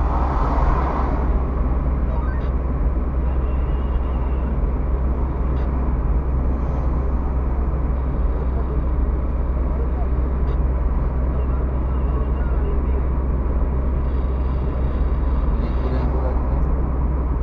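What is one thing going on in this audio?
Tyres roll over the road surface at speed.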